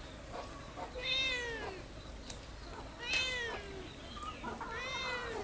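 A cat meows repeatedly nearby.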